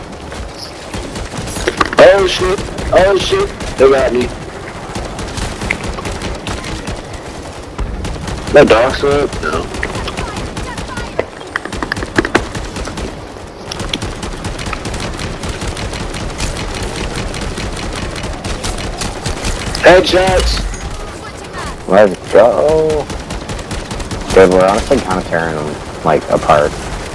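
Rifle shots crack in rapid bursts.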